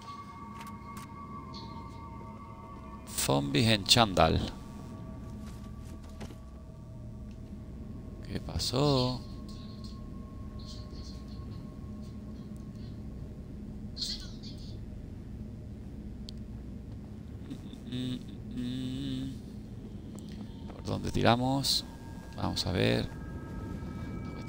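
Footsteps pad softly on carpet.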